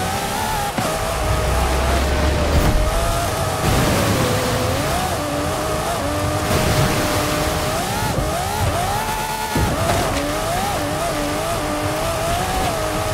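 A sports car engine roars at high revs, rising and falling in pitch as the car accelerates and shifts gears.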